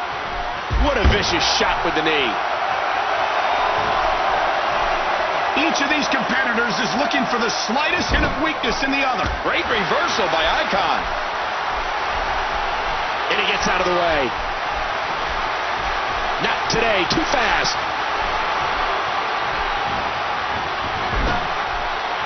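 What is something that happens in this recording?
Punches land with heavy thuds.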